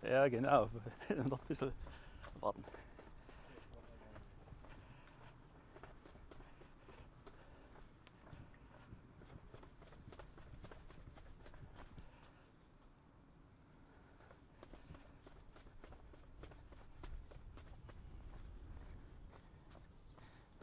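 Footsteps tread down stone steps outdoors.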